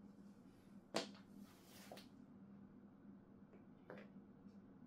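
Small parts click and tap against a wooden board.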